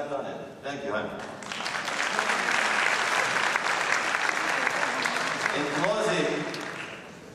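A man speaks into a microphone in a large room.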